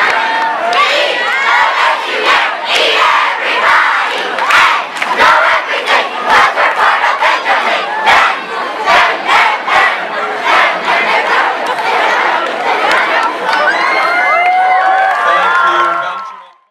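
A crowd of young children shout and cheer outdoors.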